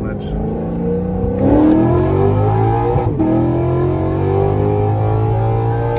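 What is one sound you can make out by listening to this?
A car engine hums and revs as the car accelerates.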